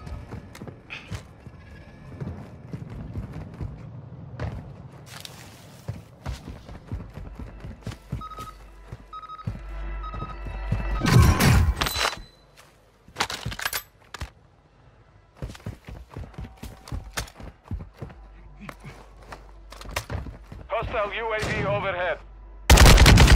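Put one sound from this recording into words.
Footsteps patter quickly on hard ground and gravel.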